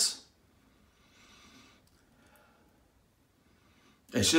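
A man sniffs a small bottle.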